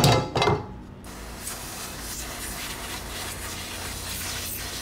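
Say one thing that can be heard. Plastic sheeting rustles as it is brushed against.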